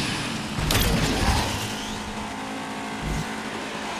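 Obstacles crash and smash against a car.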